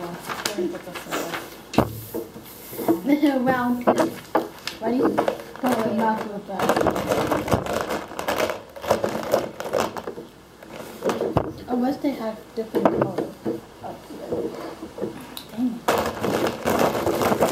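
Paper rustles and slides on a table.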